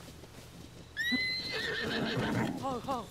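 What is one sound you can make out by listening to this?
Hooves gallop over grass.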